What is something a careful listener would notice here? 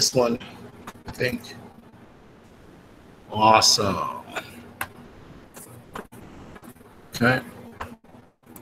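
A man speaks calmly through an online call, in short bursts.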